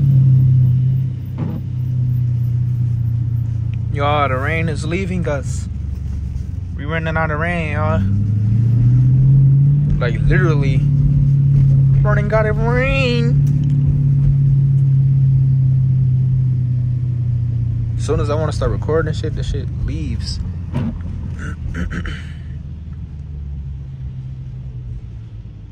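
A V8 muscle car's engine hums inside the car while it cruises.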